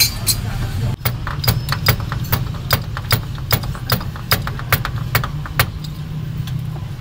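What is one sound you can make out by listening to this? A ratchet wrench clicks in quick, even bursts.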